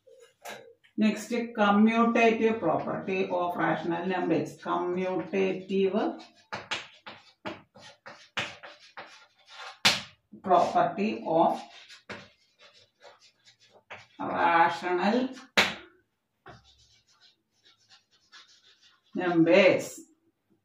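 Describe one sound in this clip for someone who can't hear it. A woman speaks nearby, explaining steadily in short bursts.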